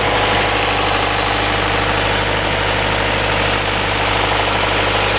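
A diesel generator engine runs close by with a steady, loud rumble and clatter.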